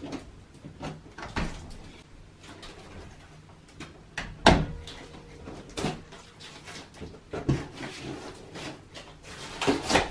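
Cardboard boxes scrape and thump as they are shifted.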